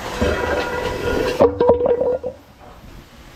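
A heavy metal cover scrapes and grinds across paving stones.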